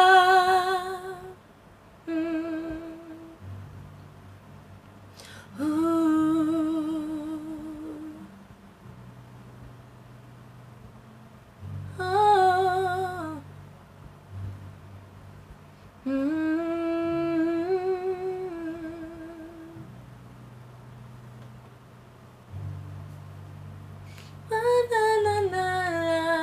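A young woman sings slowly and with feeling, close by, in long held notes with vibrato.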